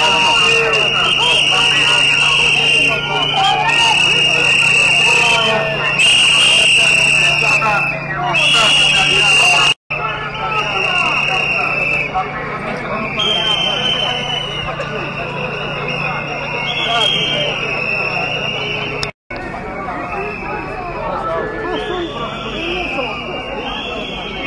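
A large outdoor crowd of men and women talks and shouts all at once.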